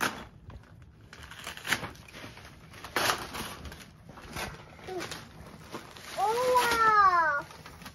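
Wrapping paper rustles and crinkles.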